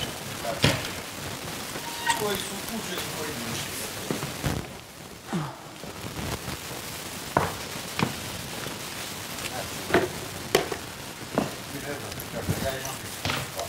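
Small objects clatter and click.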